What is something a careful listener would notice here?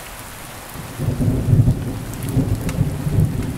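Thunder rumbles deeply and loudly outdoors.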